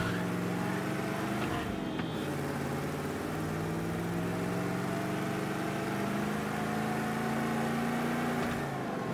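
An old car engine hums steadily and revs up and down.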